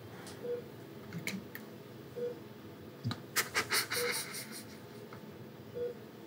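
An elderly man sobs quietly.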